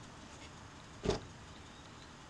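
A car door shuts.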